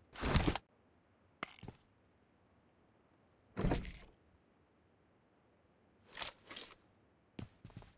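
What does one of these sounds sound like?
A door swings open with a creak.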